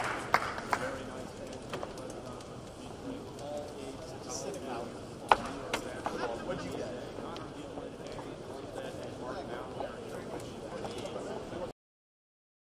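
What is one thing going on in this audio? A crowd of men chatter nearby.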